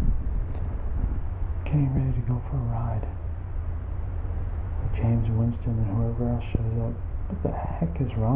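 A middle-aged man talks close up in a calm voice.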